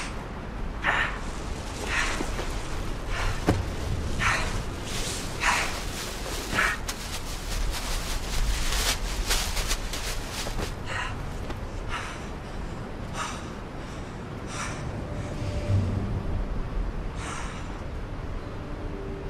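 Waves break and wash onto a beach.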